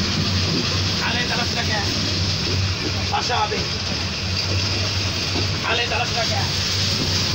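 Men and women chatter nearby over the noise.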